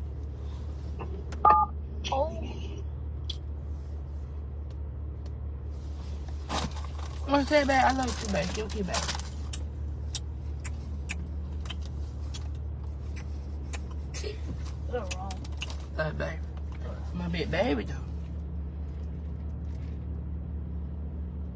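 A low engine hum runs steadily inside a car.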